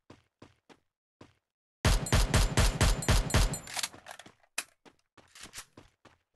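Footsteps run on grass.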